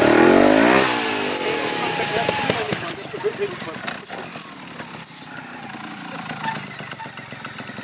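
A motorbike engine revs hard, then idles and blips.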